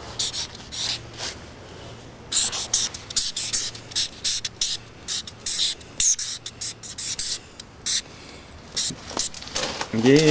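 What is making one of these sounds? A marker squeaks in short strokes on metal.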